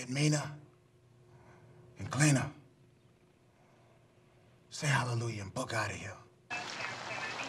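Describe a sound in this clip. A young man speaks calmly nearby.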